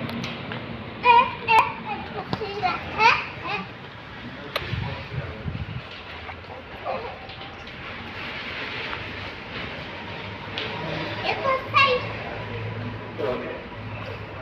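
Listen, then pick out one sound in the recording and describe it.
A young girl talks and squeals playfully close by.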